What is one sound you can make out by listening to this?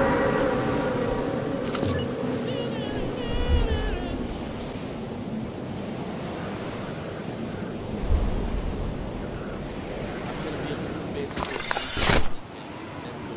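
Wind rushes loudly past a skydiver falling through the air.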